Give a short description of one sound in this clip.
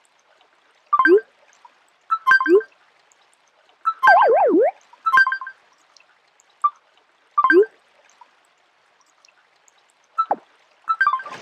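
Short electronic chimes and pops sound as game menu items are tapped.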